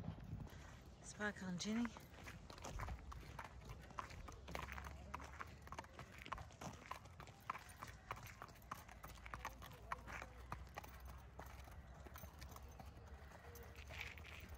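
Two horses walk on a wet dirt track, hooves thudding.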